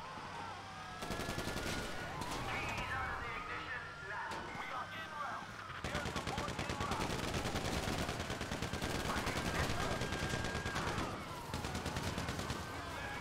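Police sirens wail nearby, rising and falling.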